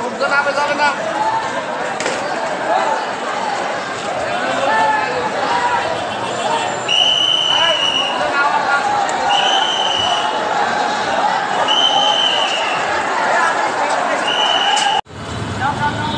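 A crowd of people shouts and chatters outdoors.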